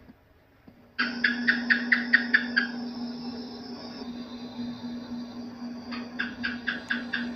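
A gecko chirps in quick runs of sharp clicks.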